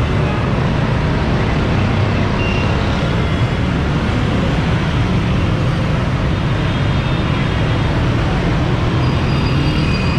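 Auto rickshaw engines rattle nearby.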